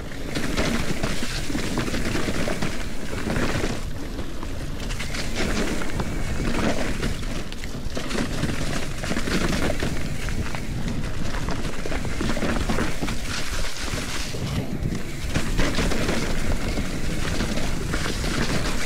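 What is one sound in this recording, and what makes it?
Mountain bike tyres crunch and rustle over dry leaves on a trail.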